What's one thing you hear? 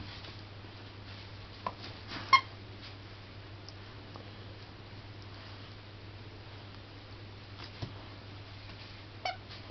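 A dog chews and gnaws on a toy.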